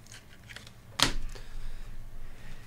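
Cards tap and click as they are handled.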